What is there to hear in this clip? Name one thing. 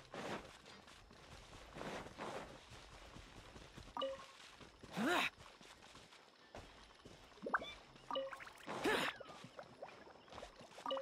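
Footsteps swish quickly through tall grass.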